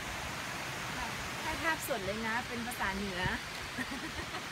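A young woman speaks playfully, close by.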